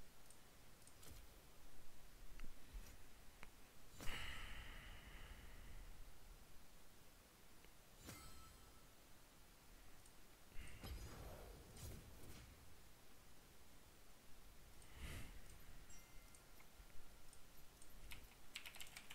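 Short game menu chimes and clicks sound now and then.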